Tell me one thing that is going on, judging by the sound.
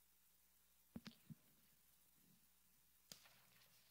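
A microphone thuds and bumps as it is handled.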